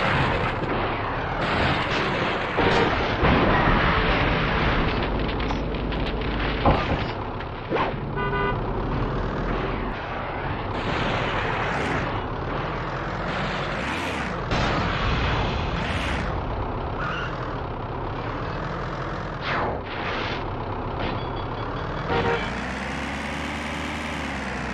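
An armoured vehicle's engine rumbles steadily as it drives.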